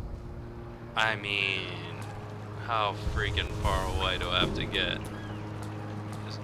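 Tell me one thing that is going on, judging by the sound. A man talks close to a microphone.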